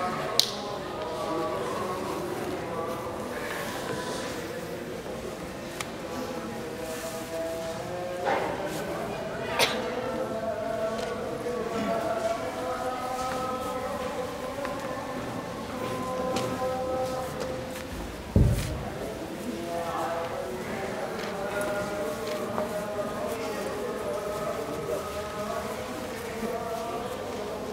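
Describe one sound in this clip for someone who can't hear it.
A crowd of young men and women chatters outdoors.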